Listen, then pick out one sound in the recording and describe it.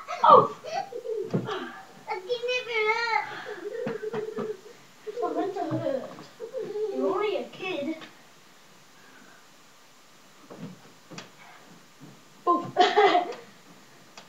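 A mattress thumps and creaks as a child jumps on it.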